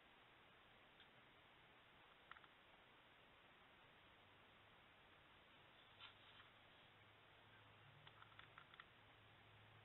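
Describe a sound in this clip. Paper rustles and taps softly as hands press and adjust a card on a table.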